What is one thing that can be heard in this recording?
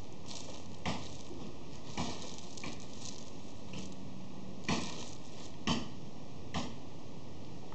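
Hands pat and press down loose gravelly soil.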